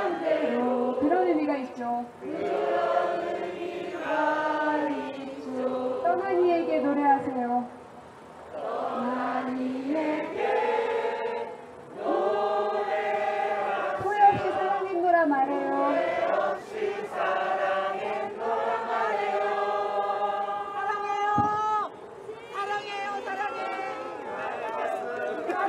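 A large crowd sings a slow song together outdoors.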